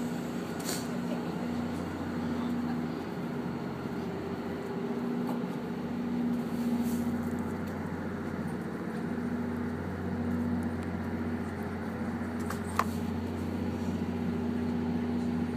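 Train wheels rumble and clatter along the rails.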